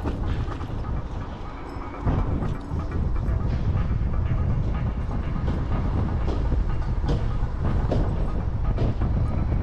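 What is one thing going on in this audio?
Wind rushes and buffets loudly past a moving rider.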